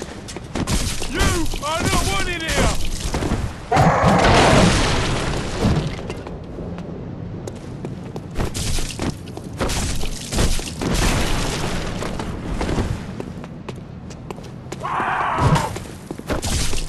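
A creature cries out in pain.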